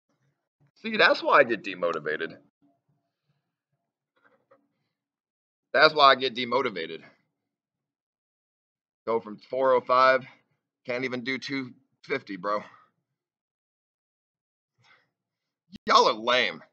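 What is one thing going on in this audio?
A young man talks close to the microphone in short, lively bursts.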